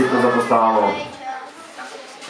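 A young man speaks loudly into a microphone through a loudspeaker.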